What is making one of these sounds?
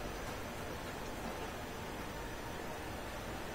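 Eggs sizzle and bubble in a hot pan.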